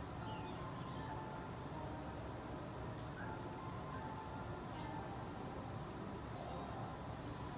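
Short bright game sound effects chime now and then.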